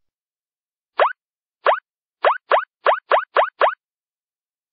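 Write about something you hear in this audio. Quick rising chimes pop up one after another.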